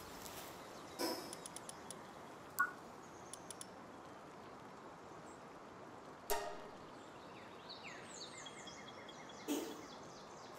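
Menu clicks and chimes sound sharply now and then.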